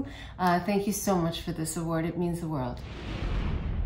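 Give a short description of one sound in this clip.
A woman speaks warmly and with animation into a close microphone.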